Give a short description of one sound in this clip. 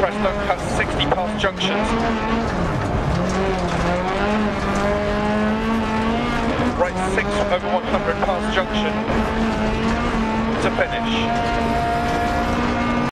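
Tyres crunch and skid over loose gravel.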